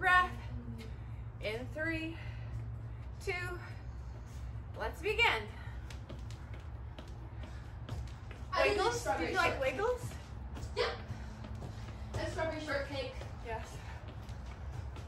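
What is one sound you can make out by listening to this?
A woman talks with animation nearby, in short bursts.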